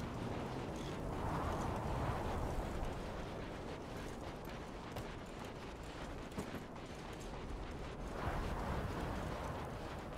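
Footsteps run quickly over sand.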